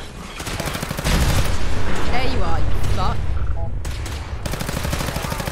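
An explosion booms with a deep roar.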